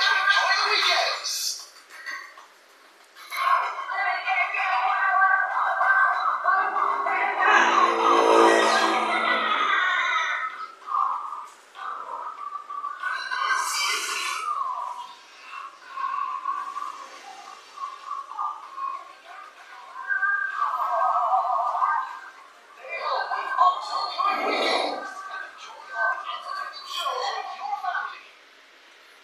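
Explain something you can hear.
Cartoon music and sound effects play from a television loudspeaker in a room.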